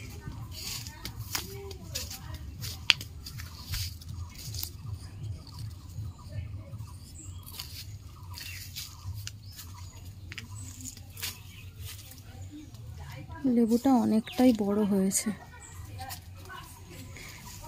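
Leaves rustle and brush close by as branches are pushed aside.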